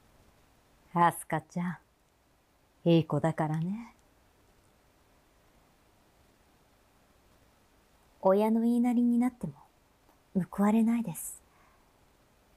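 A woman speaks in a higher voice close to a microphone.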